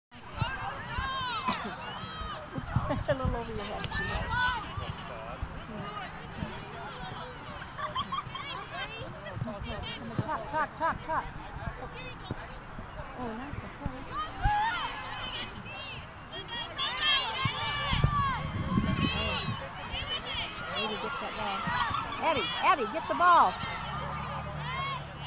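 Young girls shout and call out across an open field.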